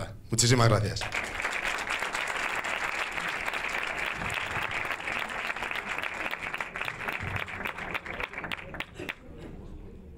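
An audience applauds.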